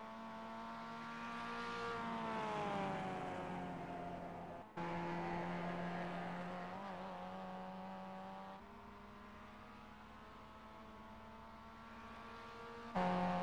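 A four-cylinder sports car engine drones at racing speed, its pitch rising and falling through the gears and corners.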